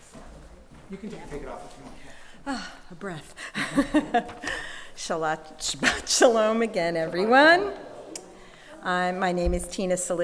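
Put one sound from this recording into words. A woman speaks expressively into a microphone.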